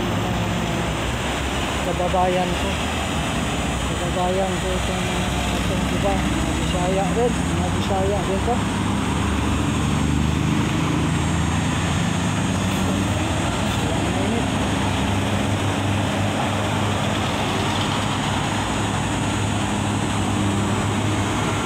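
Traffic passes by on a road.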